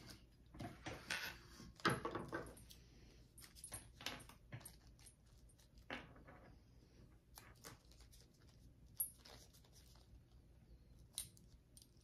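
Scissors snip threads with small clicks.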